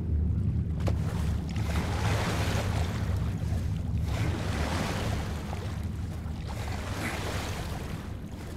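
Oars splash and swish through water in slow, regular strokes.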